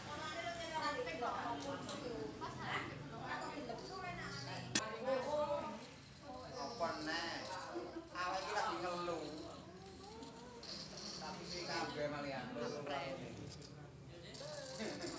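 Teenage girls and boys chat and talk over each other close by.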